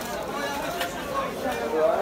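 A knife cuts through fish on a wooden board.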